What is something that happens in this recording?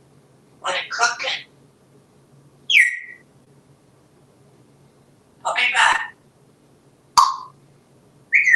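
A parrot squawks and chatters in short bursts.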